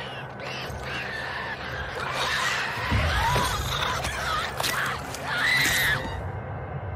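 A monstrous creature snarls and shrieks close by.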